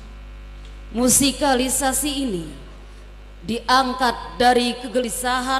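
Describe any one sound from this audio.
A woman recites with expression through a microphone.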